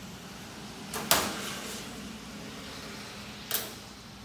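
Small metal parts clank against a metal workbench.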